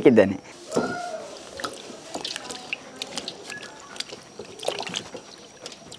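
Water splashes and sloshes in a basin.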